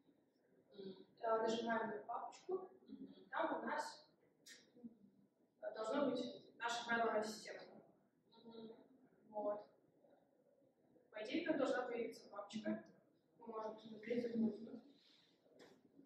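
A young woman speaks calmly to a small audience.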